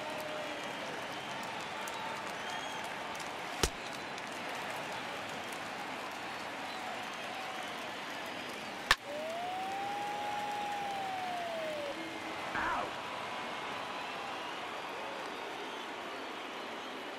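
A stadium crowd murmurs steadily throughout.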